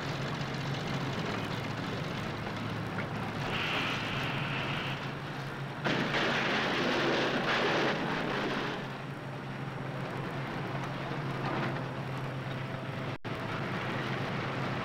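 A crane engine hums steadily.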